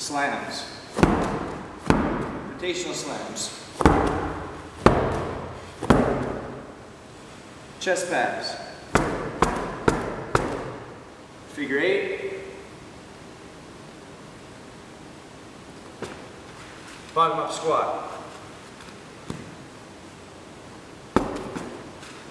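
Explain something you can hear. A medicine ball thuds against the floor.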